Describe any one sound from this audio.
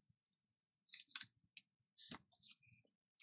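A wooden tool taps lightly on a table.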